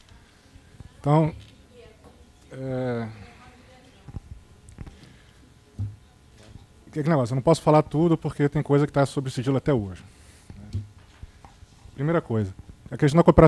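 A man speaks into a microphone in short, pausing phrases.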